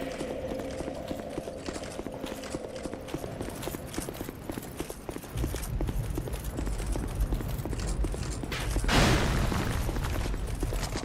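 Footsteps clatter quickly on stone.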